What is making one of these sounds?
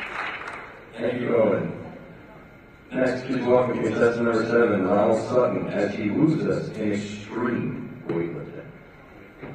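A young woman speaks clearly into a microphone, heard over loudspeakers in a hall.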